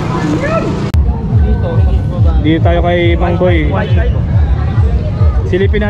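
Two men chat with each other nearby.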